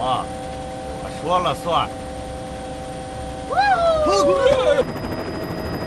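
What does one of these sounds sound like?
A man speaks calmly over a headset radio.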